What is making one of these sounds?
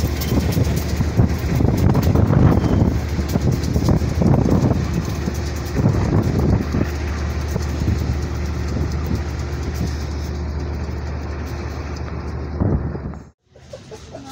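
A diesel locomotive rumbles loudly as it rolls slowly closer.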